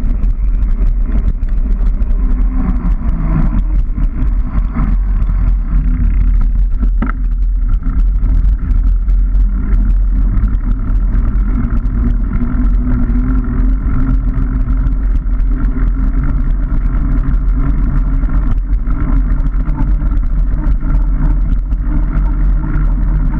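Bicycle tyres roll and rattle over a rough road.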